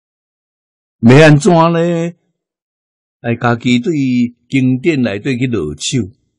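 An elderly man speaks calmly and slowly into a microphone.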